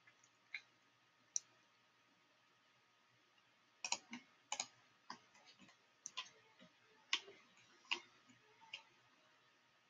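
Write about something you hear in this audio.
Soft clicks sound as menu buttons are pressed.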